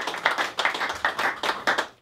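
An acoustic guitar is strummed.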